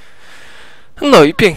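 A young man speaks loudly and excitedly into a close microphone.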